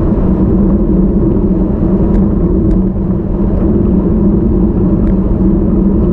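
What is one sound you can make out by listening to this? Wind rumbles and buffets steadily against a microphone outdoors.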